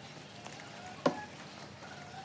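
Wooden boards knock together with a sharp clack.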